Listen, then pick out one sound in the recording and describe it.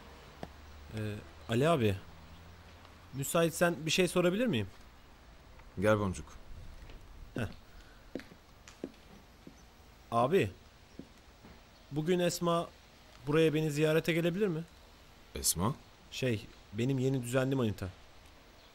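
A young man speaks quietly up close.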